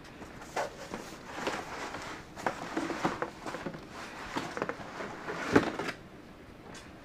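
Cardboard rustles and scrapes as a plastic sprayer is pulled from a box.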